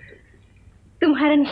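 A young woman sings out in a high voice.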